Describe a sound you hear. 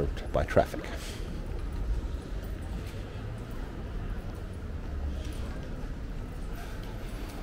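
Pedestrians walk on paving stones in an open street.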